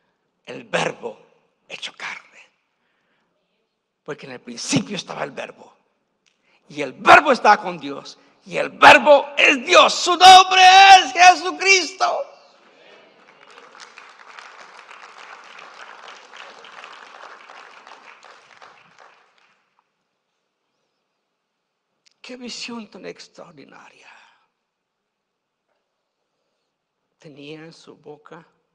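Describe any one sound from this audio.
A middle-aged man speaks passionately through a microphone, rising to loud shouts.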